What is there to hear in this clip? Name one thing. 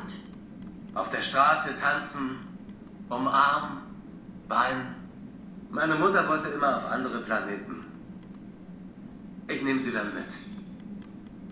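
A man speaks calmly in a low voice, close by.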